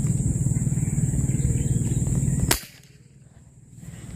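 A fishing lure splashes into calm water.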